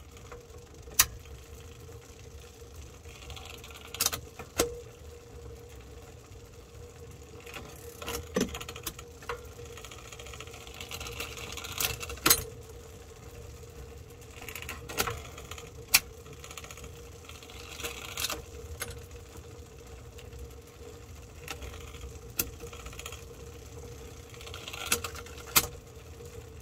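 A metal hex key clicks and taps against a bicycle brake bolt.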